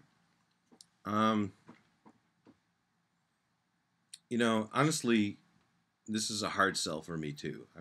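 A middle-aged man speaks close to a microphone, in a hesitant, weary tone with pauses.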